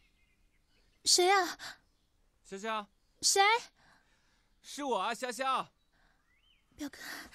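A young woman calls out loudly with animation.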